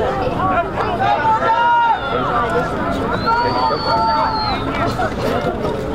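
Football players' pads clash as the players collide.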